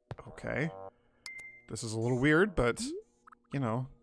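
A short musical chime plays as a game menu pops open.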